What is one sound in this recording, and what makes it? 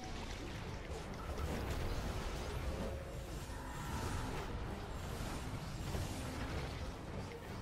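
Game spell effects crackle and boom in a busy fight.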